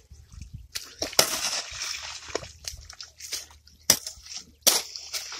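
A hoe chops and scrapes into wet mud.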